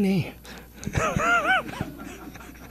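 An older man laughs softly into a microphone.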